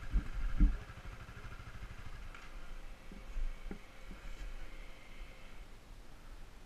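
Dirt bike engines idle close by.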